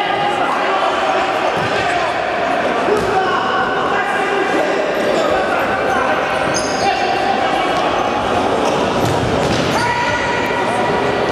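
Sneakers squeak sharply on a hard floor in an echoing hall.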